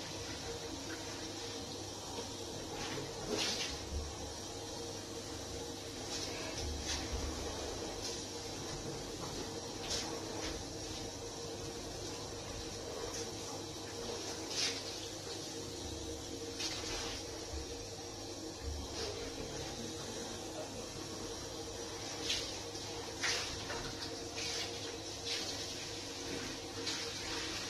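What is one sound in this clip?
A cloth squeaks and rubs against glass.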